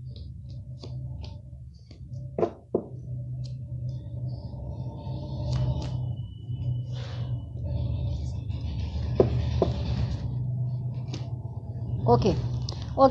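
Playing cards shuffle and tap in a woman's hands.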